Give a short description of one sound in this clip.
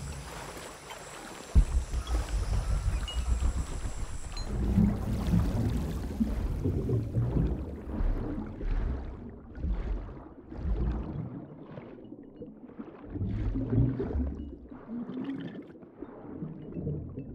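A swimmer strokes through water, with muffled underwater swirling.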